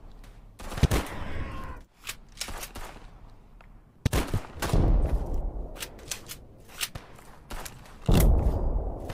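A bolt-action rifle fires single loud shots.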